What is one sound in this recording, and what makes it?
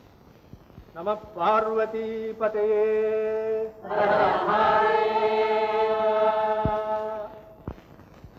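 A man chants a prayer aloud in a drawn-out, sung voice.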